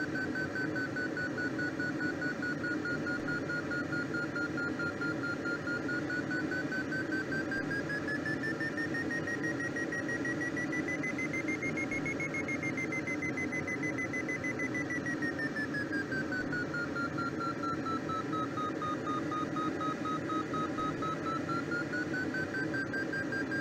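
Wind rushes steadily past a glider cockpit.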